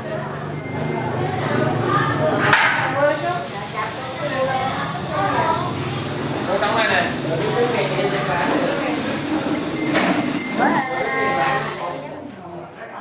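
A group of boys chatter and call out around a room.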